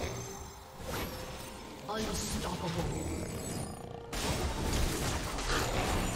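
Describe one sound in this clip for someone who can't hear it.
Fantasy video game sound effects of magic spells and hits ring out in quick bursts.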